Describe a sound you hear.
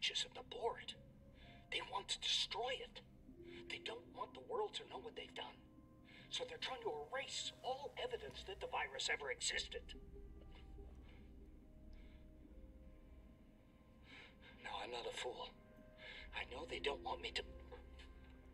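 A middle-aged man speaks calmly, heard through an old recording.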